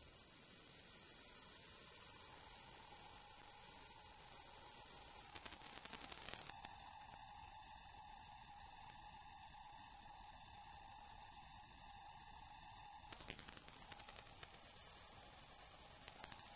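A synthesizer drones a quiet, thin tone that slowly swells.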